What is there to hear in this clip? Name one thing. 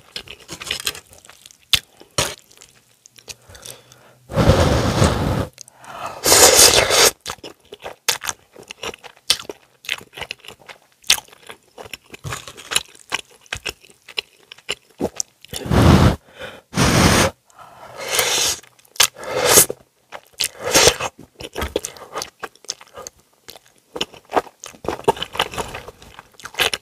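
A woman chews food wetly, close to a microphone.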